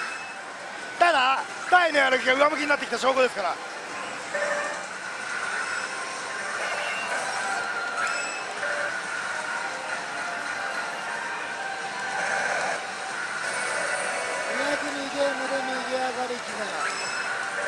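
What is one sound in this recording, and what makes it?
A man talks excitedly close by.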